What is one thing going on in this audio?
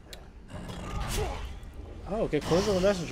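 A blade whooshes through the air.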